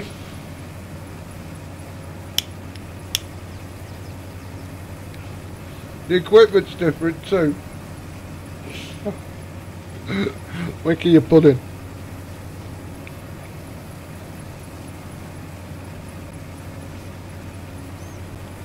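A harvester engine hums steadily at a low pitch.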